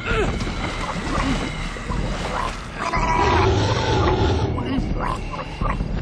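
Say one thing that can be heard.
Water splashes as a man is pushed into a pool.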